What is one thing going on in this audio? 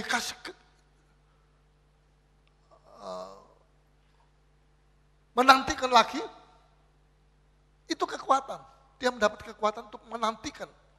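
A middle-aged man preaches forcefully through a microphone in bursts.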